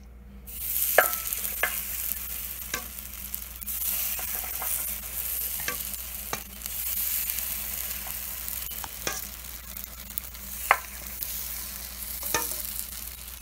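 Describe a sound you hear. A metal ladle knocks against the pan now and then.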